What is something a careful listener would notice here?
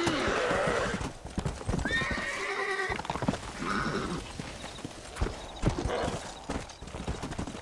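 Horse hooves thud rapidly at a gallop.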